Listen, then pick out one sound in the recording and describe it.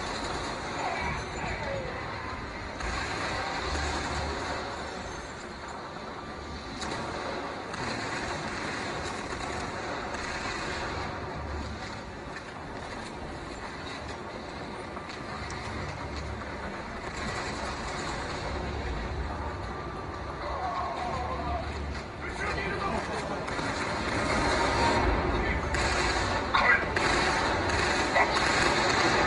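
Rapid gunfire and explosions play from a small handheld game speaker.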